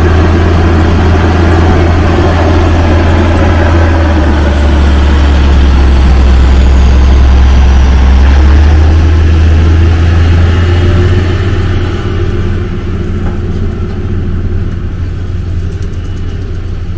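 A tractor's diesel engine rumbles loudly as it drives past close by.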